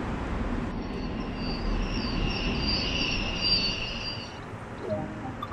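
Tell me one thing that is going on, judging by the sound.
Train brakes squeal as the train comes to a stop.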